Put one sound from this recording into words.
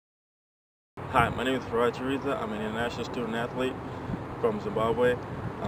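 A young man speaks calmly and close by, outdoors.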